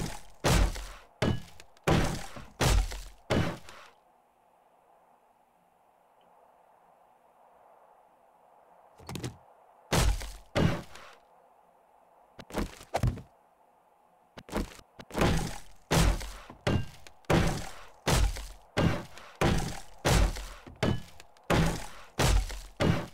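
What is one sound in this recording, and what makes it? A hammer strikes wood.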